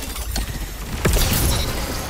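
A heavy whooshing blast sweeps past.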